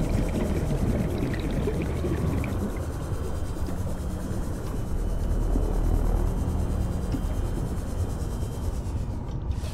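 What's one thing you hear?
A submarine's engine hums steadily underwater.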